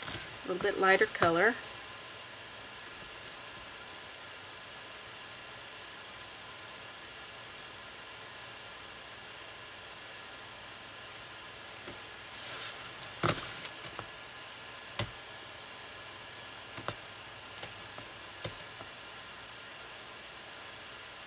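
A brush strokes softly across a painted surface.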